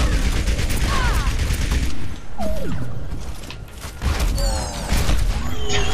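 A rifle fires quick shots.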